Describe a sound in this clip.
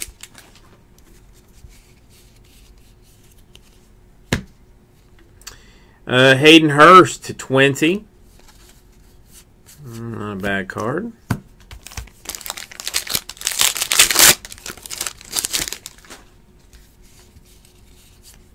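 A stack of trading cards is shuffled through by hand.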